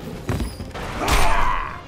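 A punch lands with a loud, sharp smack.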